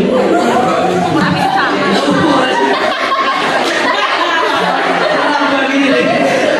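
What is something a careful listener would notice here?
A group of young people laughs and chatters nearby.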